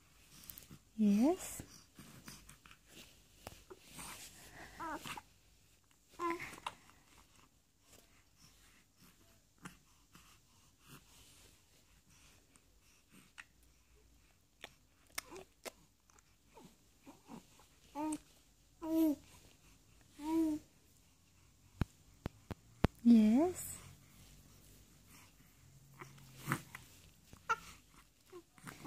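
A baby coos and babbles softly up close.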